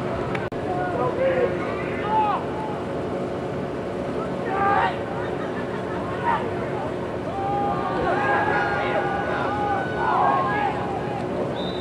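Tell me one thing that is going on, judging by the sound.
Young men shout and call out in the distance, outdoors.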